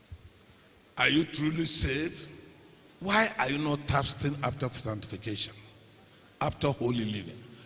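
A crowd of men and women pray aloud together in an echoing hall.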